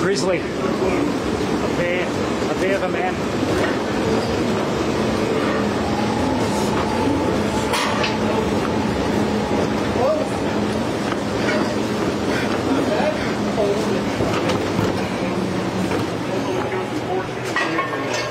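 A stair-climbing machine hums and clatters steadily.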